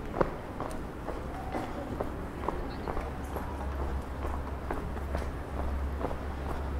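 Footsteps tap steadily on cobblestones.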